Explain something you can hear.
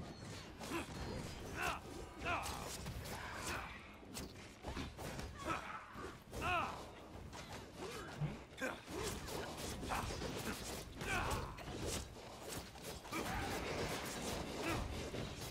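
Magic blasts crackle and burst.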